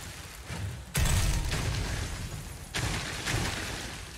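Shards of ice clatter onto rock.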